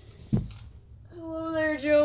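Plastic toy pieces click and rattle as a hand moves them.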